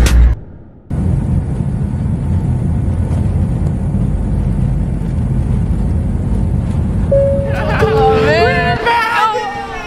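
A jet engine roars loudly as a plane taxis.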